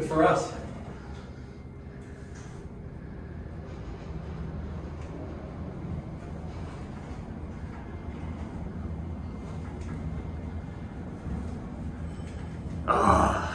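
An elevator car hums steadily as it rises.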